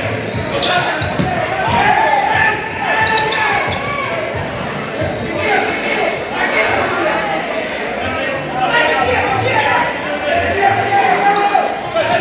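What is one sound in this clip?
A ball thuds as players kick it.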